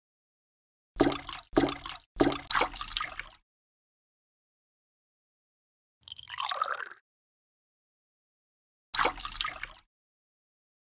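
A small cup scoops water with a splash.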